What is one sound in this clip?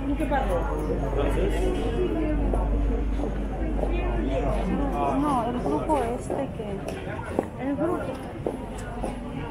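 A crowd of men and women chatters nearby, outdoors on a busy street.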